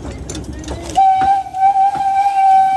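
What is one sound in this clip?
A steam locomotive whistle blows loudly and steadily.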